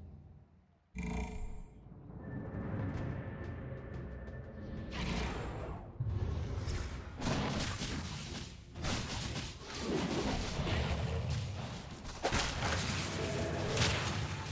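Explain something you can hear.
Game combat sounds clash and crackle loudly.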